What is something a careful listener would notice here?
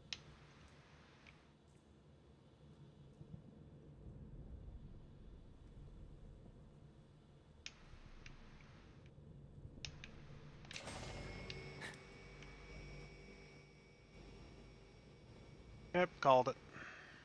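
Flames crackle softly on a weapon held close.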